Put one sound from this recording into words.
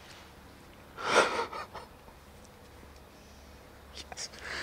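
A young man laughs softly.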